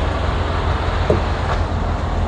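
A man kicks a truck tyre with a dull thud.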